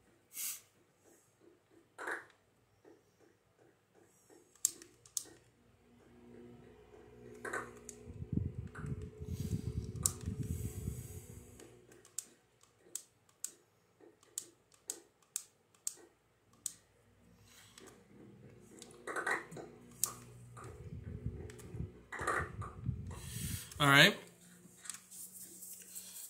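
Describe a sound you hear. Short clicks and taps of a video game's sound effects come from a television speaker.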